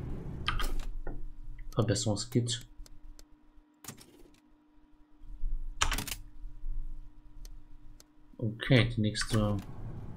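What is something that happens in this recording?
Short electronic clicks sound as menu items are selected.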